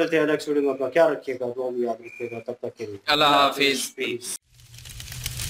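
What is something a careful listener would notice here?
Men sing together into a nearby microphone.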